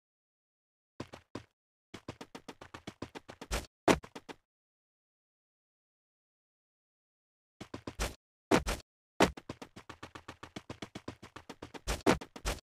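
Quick footsteps run over dry ground.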